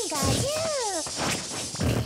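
Electric zaps crackle from a video game attack.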